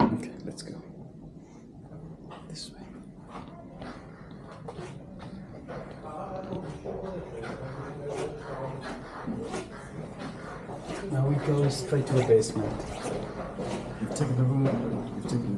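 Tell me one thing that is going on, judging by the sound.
A man talks with animation, close by.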